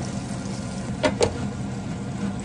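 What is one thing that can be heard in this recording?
A pan lid clanks onto a pan.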